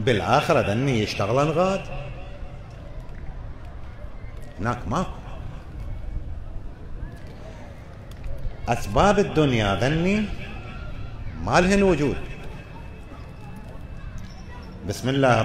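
An elderly man speaks with feeling into a microphone, his voice echoing in a large hall, in drawn-out, chanting phrases with pauses between them.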